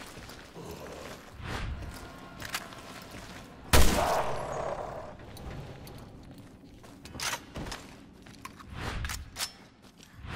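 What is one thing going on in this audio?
Footsteps crunch over debris.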